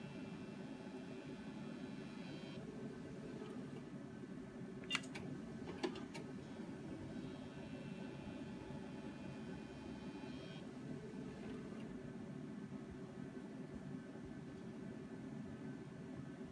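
An ultrasound machine hums steadily.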